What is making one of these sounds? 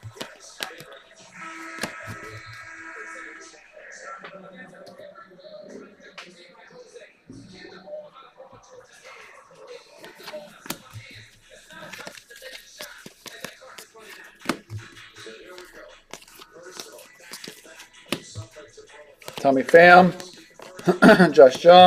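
Trading cards slide and rustle against each other in hands.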